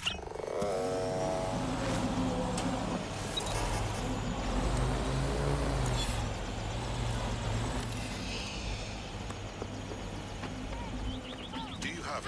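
A drone's propellers hum steadily.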